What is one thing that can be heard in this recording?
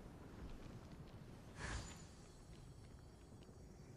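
Wings whoosh through the air as a figure glides and lands.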